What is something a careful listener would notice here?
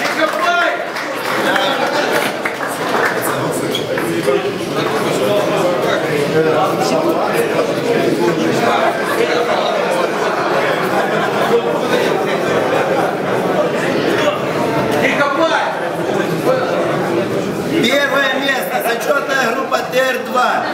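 A crowd of people chatters and cheers in a room.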